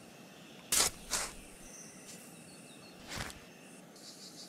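A shovel digs into soil with a thud.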